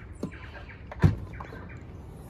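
A car's tailgate latch clicks open.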